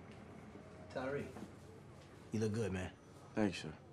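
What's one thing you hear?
A man speaks calmly and warmly nearby.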